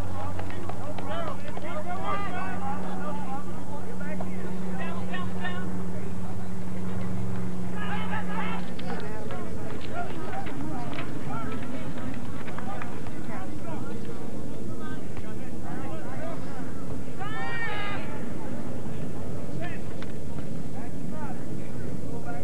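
A crowd of spectators chatters and calls out nearby outdoors.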